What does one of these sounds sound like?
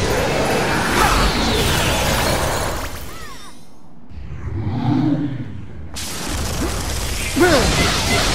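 A burst of magic whooshes loudly.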